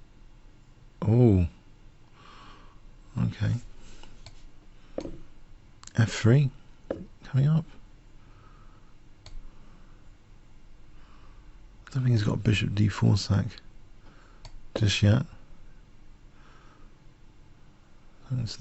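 A man talks calmly into a microphone in short bursts.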